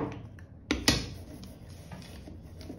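A hand tool rubs across paper.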